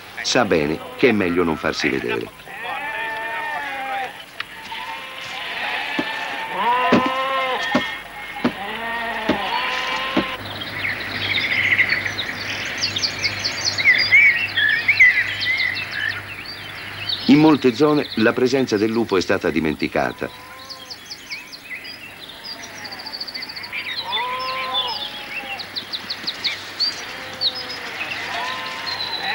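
Sheep bleat loudly, many times over.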